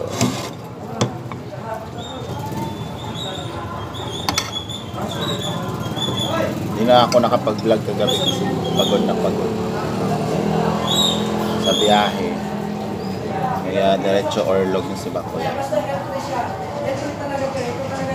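A metal spoon clinks and scrapes against a plate.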